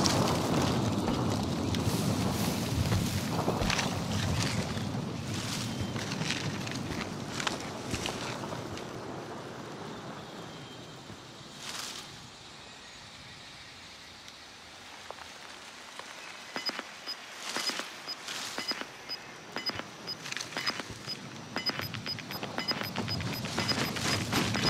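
Footsteps tread on rock and brush through leaves.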